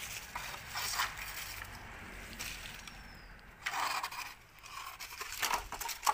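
A stick scrapes across dry earth.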